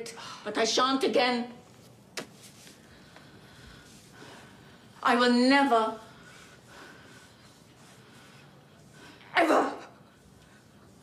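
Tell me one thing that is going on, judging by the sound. An older woman speaks anxiously and close by, in short bursts.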